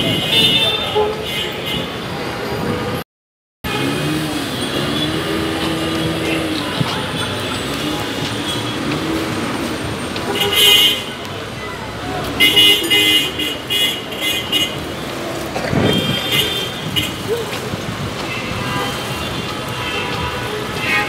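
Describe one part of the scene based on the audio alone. Traffic hums and rumbles steadily along a busy street outdoors.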